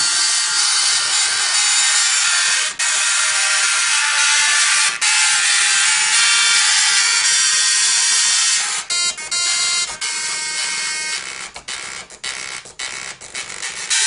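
A dot matrix printer buzzes loudly in shifting pitched tones as its print head moves.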